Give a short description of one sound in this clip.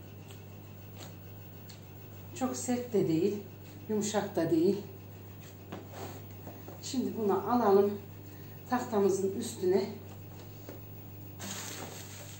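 Dough squelches softly as it is kneaded.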